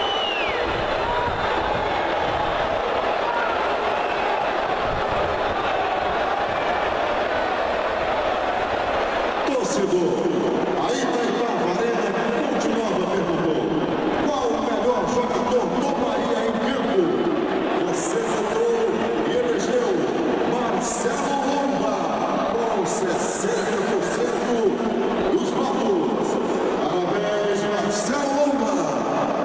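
A large crowd murmurs and roars in an open stadium.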